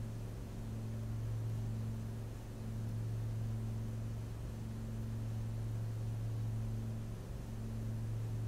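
A single-engine piston light aircraft drones steadily in cruise, heard from inside the cabin.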